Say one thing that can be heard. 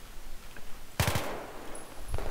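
An assault rifle fires a short burst.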